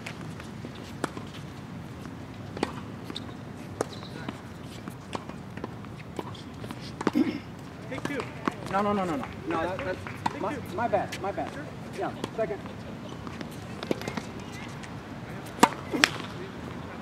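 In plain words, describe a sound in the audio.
Tennis balls are struck with rackets in sharp, hollow pops.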